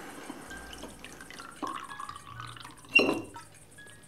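Liquid glugs as it pours from a bottle into a glass.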